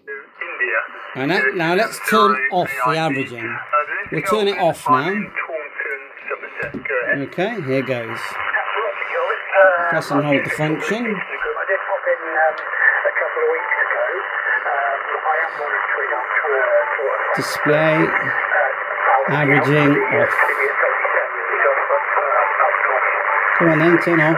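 A radio receiver plays hissing static with crackly, distorted voices through its speaker.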